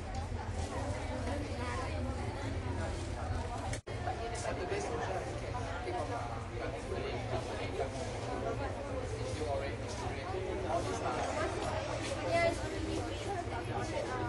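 A crowd of men and women chatter all around in a large room.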